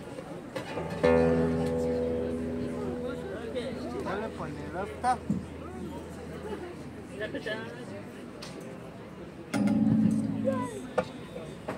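A double bass sounds deep, ringing notes.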